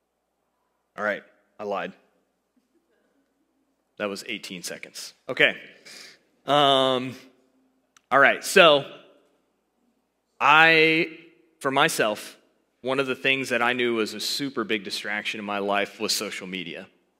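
A man speaks calmly through a headset microphone, in pauses.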